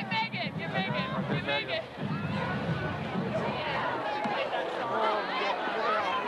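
A crowd of young people chatter and call out all around, outdoors.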